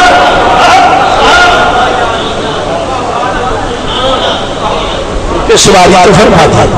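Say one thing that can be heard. An elderly man speaks through a microphone and loudspeakers, preaching with feeling.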